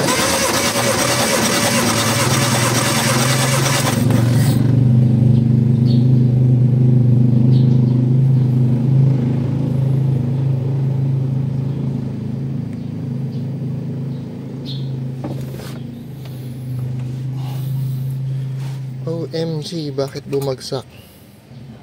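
An engine cranks over steadily with a low drone.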